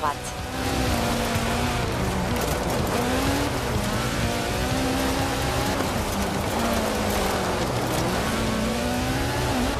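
A rally car engine revs up and down as it drifts.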